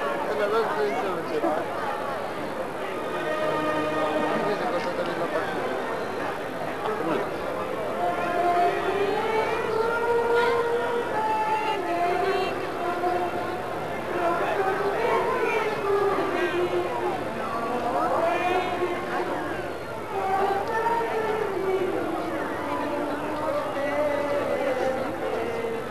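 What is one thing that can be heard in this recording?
A crowd of men and women murmurs and chatters nearby.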